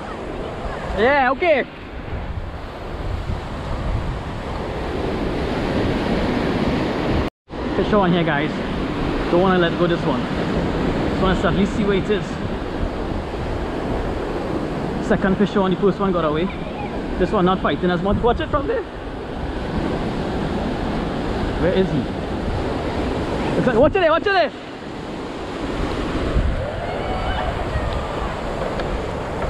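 Waves crash and churn against rocks outdoors.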